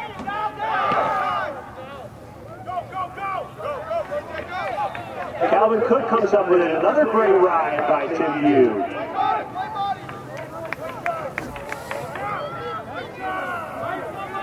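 Spectators shout and cheer outdoors, rising to loud excited yelling for a few seconds.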